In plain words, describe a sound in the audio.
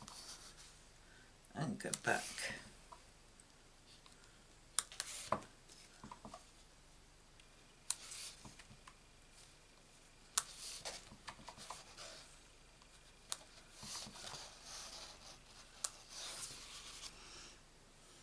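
A foam ink tool brushes and dabs against paper.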